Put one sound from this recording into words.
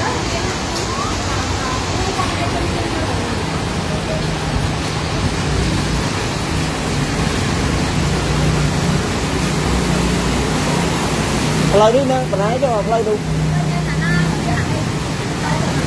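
Heavy rain pours down steadily.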